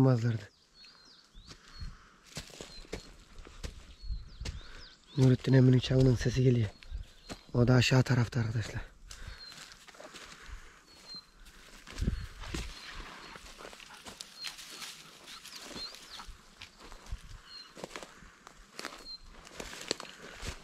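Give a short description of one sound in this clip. Footsteps crunch on dry pine needles and twigs.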